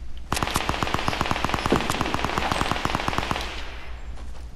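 A rapid gun fires a quick burst of shots.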